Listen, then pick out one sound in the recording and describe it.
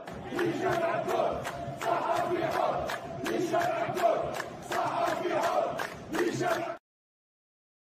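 A large crowd chants loudly in rhythm outdoors.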